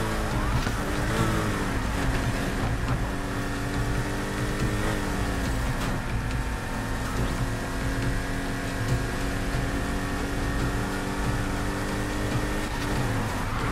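Tyres screech as a car drifts around bends.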